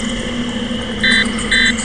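A game menu beeps twice.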